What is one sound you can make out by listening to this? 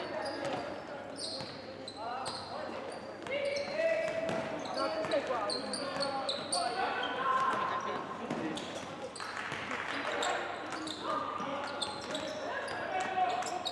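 Young players shout to each other across the hall.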